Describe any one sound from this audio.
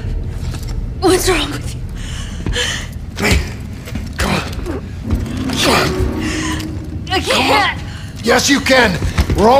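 A man urges someone on with quick, breathless words nearby.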